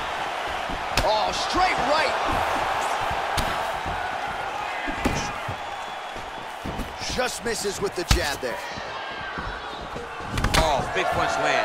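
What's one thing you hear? Punches and kicks land with sharp thuds.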